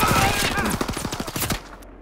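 Gunshots fire close by.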